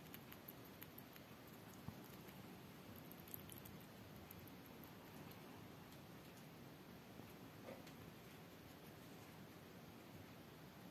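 A rat nibbles and chews food from a plate with faint crunching clicks.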